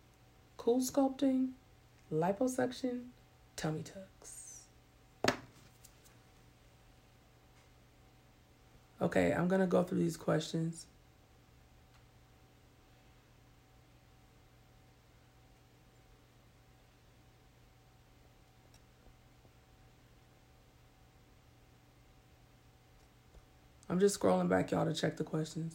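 A woman speaks calmly and close up, in bursts with long pauses.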